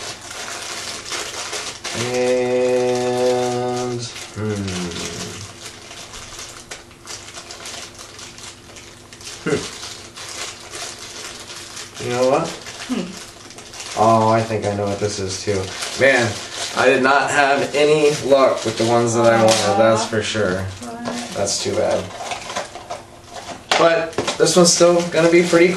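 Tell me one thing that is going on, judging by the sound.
Plastic packaging crinkles in hands.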